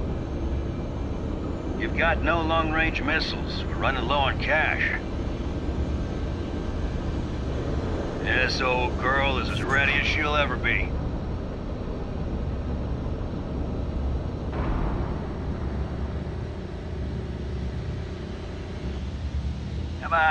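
A large machine hums with a low, steady rumble.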